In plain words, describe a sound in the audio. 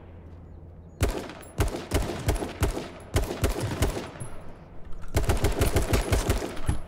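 A rifle fires a rapid string of gunshots.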